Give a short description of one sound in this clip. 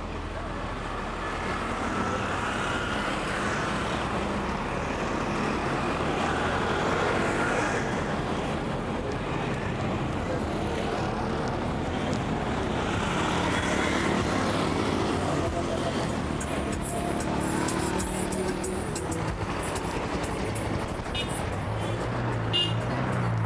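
Traffic hums steadily along a road outdoors.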